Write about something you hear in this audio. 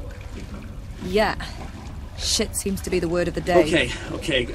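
A young woman answers calmly into a phone.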